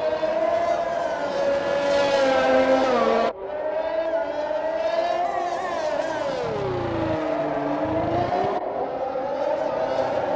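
A racing car engine screams at high revs, rising and dropping in pitch as it shifts gears.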